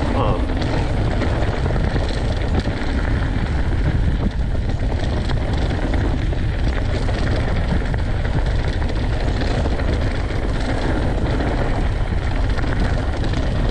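Wind rumbles loudly past the microphone outdoors.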